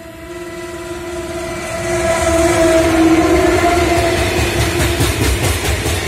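A locomotive horn blares loudly as a train approaches.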